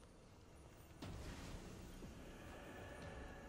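A metal container clicks open with a bright magical whoosh.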